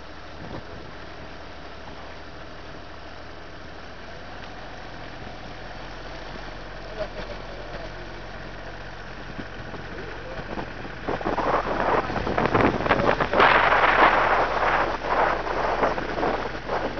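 Water laps and splashes gently against a moving boat.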